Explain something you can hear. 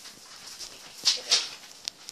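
A child's bare feet patter on a hard floor.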